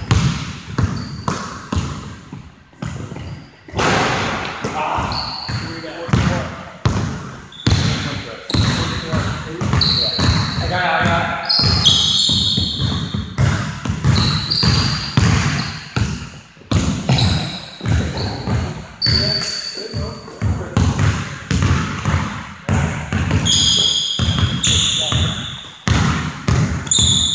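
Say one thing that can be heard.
A basketball bounces on a wooden floor in an echoing hall.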